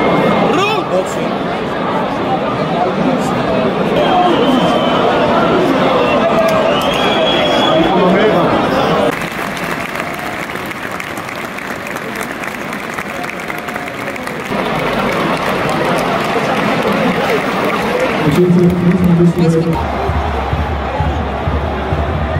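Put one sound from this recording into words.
A large stadium crowd murmurs and chatters, echoing widely.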